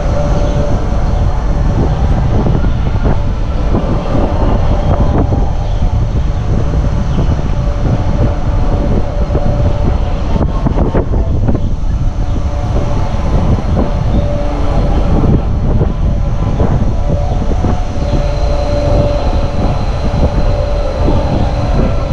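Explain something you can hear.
Wind rushes loudly past the riders of a spinning swing ride.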